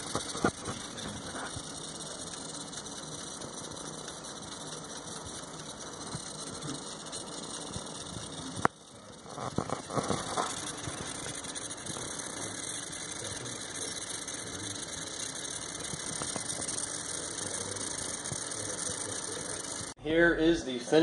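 An electric grill hums steadily.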